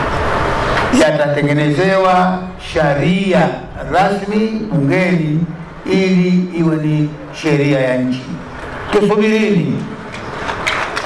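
An elderly man speaks slowly and firmly into a microphone over loudspeakers, outdoors.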